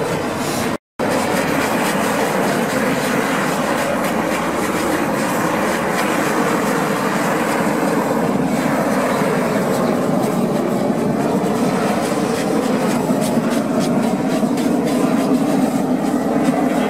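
Knives scrape and rasp against a hide.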